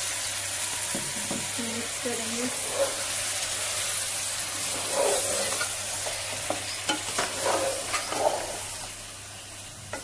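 Food sizzles in a hot pot.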